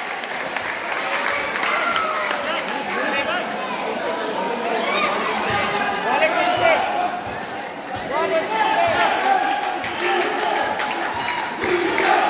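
A large crowd of spectators chatters and shouts nearby.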